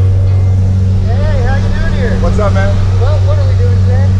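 A man speaks close by over the engine noise.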